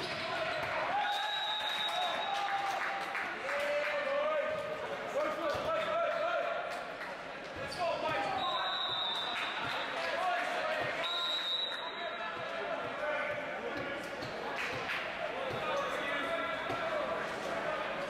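Young men shout and call to one another across an echoing hall.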